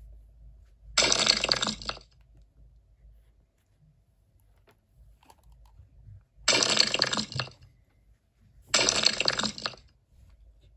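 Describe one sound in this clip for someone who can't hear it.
A phone game plays short, noisy bursts of sound effects.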